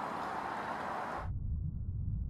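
Dry reeds rustle in the wind outdoors.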